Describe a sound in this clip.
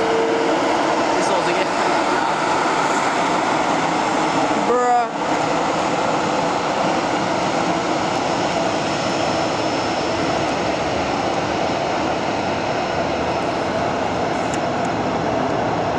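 A Boeing 737 jet airliner taxis, its engines whining and rumbling at low power.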